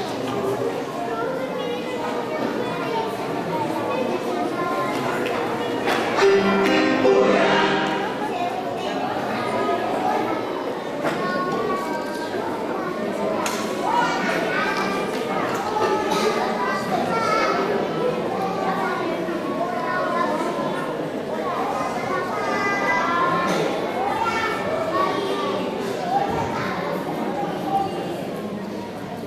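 A young man reads out over a loudspeaker in an echoing hall.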